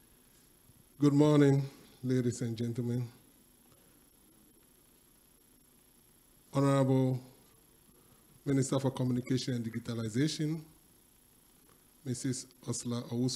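A man speaks slowly into a microphone in pauses, heard through loudspeakers.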